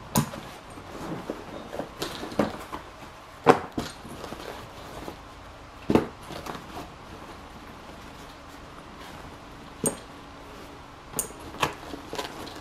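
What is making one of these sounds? Padded bag dividers thump and scrape as they are moved.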